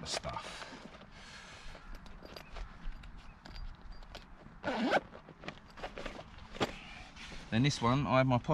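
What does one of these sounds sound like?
Fabric rustles as a man handles a cloth pouch.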